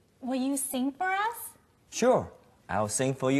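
A young woman speaks cheerfully.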